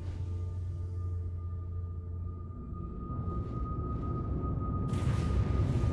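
A spacecraft's engines hum low inside the cockpit.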